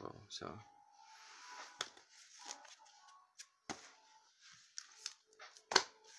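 A plastic sleeve rustles as a hand handles it.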